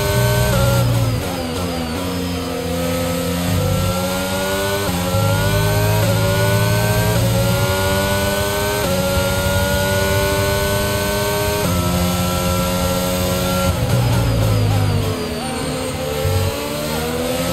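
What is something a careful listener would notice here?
A racing car engine drops in pitch as it shifts down and slows.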